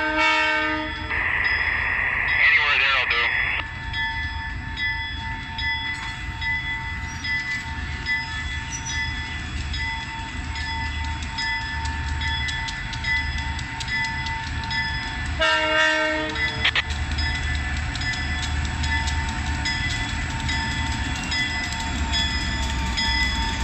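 A diesel locomotive engine rumbles as it approaches.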